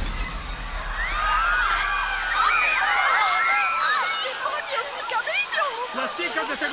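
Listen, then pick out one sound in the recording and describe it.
Young women scream wildly, close by.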